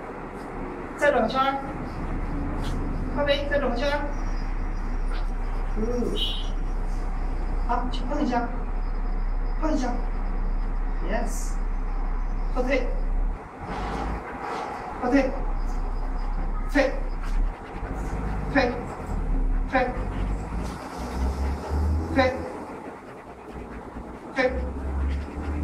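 A dog barks repeatedly, close by, in an echoing room.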